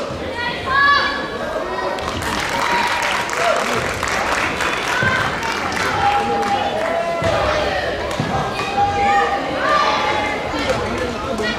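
Shoes squeak sharply on a hard court floor.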